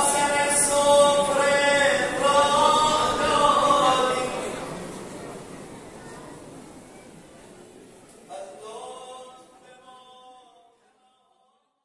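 A man sings a slow, mournful chant that echoes in a large hall.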